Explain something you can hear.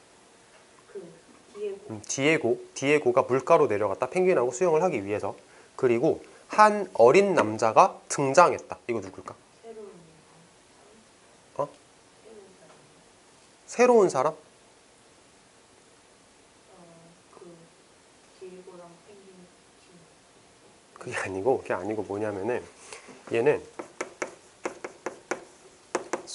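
A young man lectures calmly and clearly into a close microphone.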